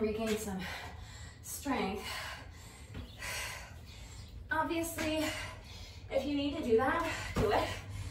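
A woman talks with energy, close by.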